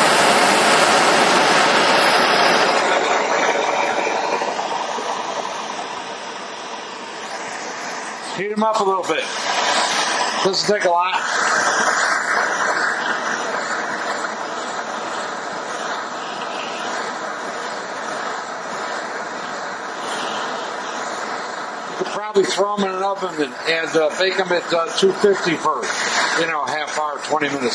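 A gas torch roars steadily with a hissing flame.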